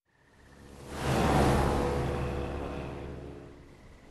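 Water splashes against a speeding boat.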